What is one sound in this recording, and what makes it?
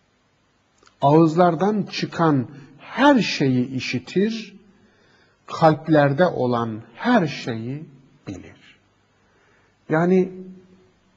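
A middle-aged man speaks calmly and explains close to a microphone.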